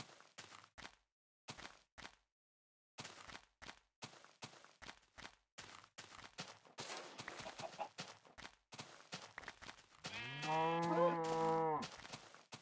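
Footsteps crunch steadily on grass.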